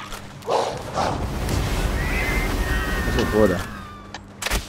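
A magical energy blast crackles and roars.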